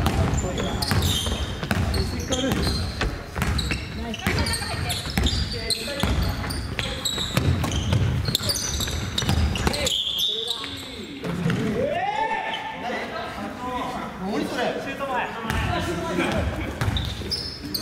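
Sneakers squeak on the hardwood floor.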